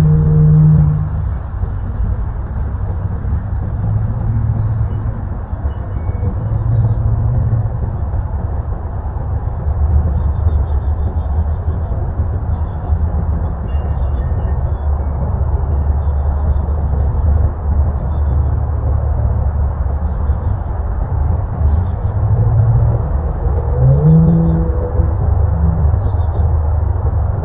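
Wind blows steadily outdoors, rumbling low against the microphone.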